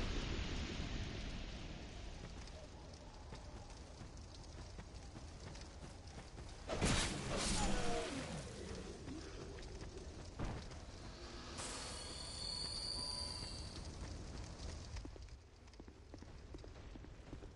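Footsteps run over ground.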